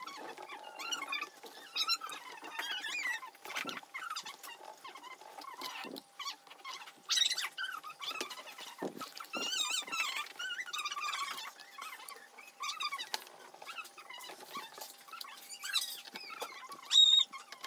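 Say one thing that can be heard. A screwdriver scrapes and clicks against a small screw.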